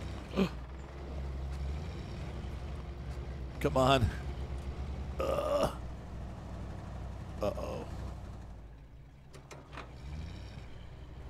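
An engine rumbles low and steadily as an off-road truck crawls over rocks.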